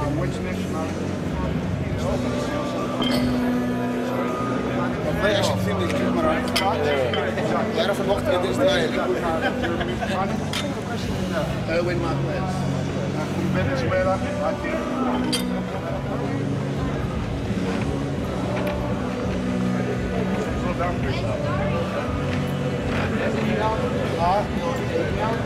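A crowd of men chatter and talk nearby.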